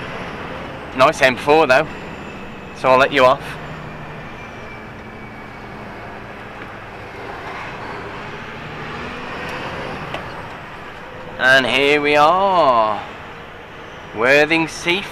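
A man speaks casually from close by, in short bursts.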